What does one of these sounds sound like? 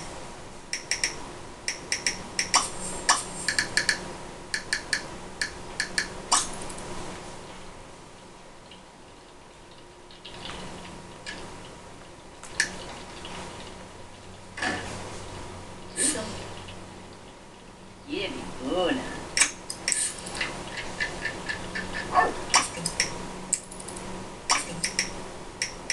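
Short menu clicks and chimes sound from a video game on a television.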